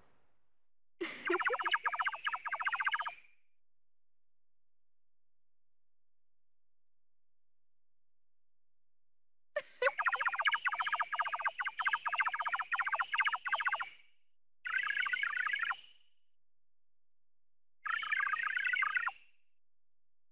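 Rapid electronic blips chatter in bursts.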